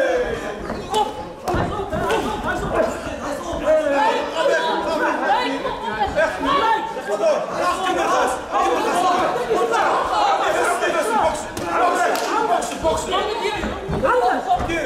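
Kicks and punches land with sharp thuds.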